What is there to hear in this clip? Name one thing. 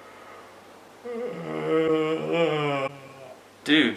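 A young man yawns loudly with a long drawn-out groan.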